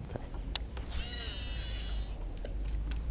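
A fishing reel whirs as a line is cast.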